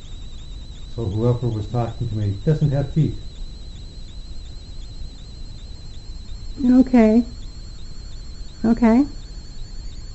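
A man speaks quietly nearby in short phrases.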